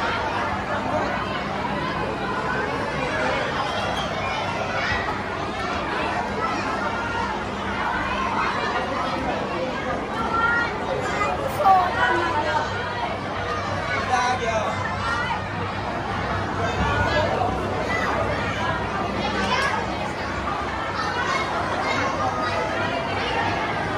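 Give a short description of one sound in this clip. A crowd of adults and children chatter all around, close by, in an echoing indoor space.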